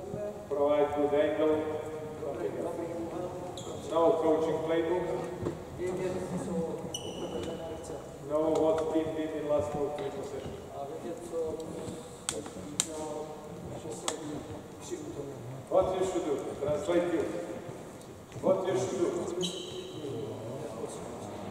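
A man speaks loudly and firmly in a large echoing hall.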